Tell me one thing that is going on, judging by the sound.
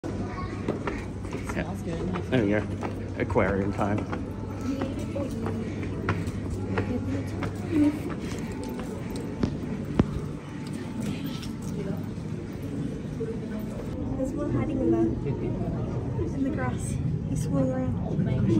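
People talk in the background.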